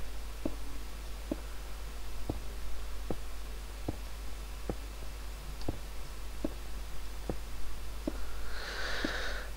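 Soft footsteps thud steadily on stone.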